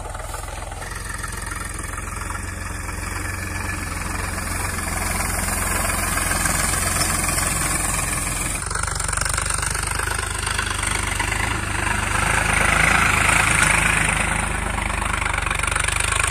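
A tractor engine chugs steadily nearby.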